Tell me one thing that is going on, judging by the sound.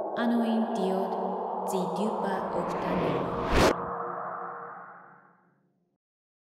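A bright magical burst whooshes and fades away.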